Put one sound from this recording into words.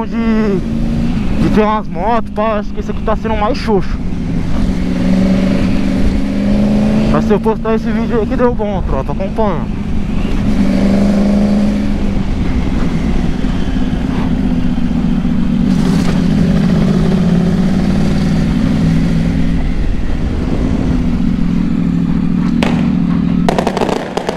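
A motorcycle engine hums steadily, rising and falling as it rides.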